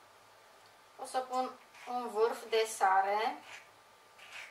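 A woman speaks in a high, animated voice nearby.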